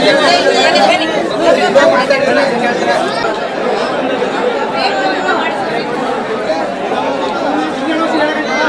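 A crowd murmurs and shouts outdoors.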